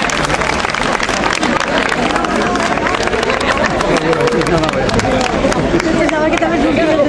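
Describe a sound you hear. A crowd claps along in rhythm.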